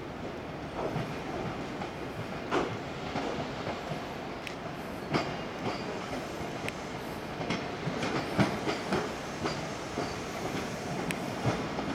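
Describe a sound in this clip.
Train wheels clack over rail joints and points.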